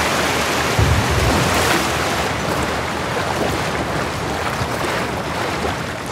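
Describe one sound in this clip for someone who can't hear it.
Footsteps splash and wade through shallow water.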